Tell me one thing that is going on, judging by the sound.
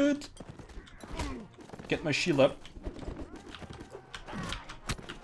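A horse gallops over snow with muffled hoofbeats.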